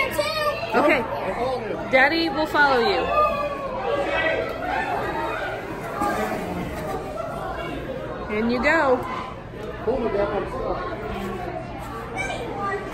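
A crowd of young people chatters and shouts loudly close by.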